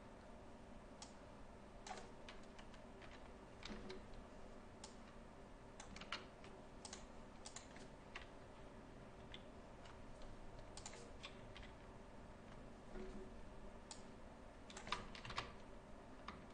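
Keys clatter on a computer keyboard.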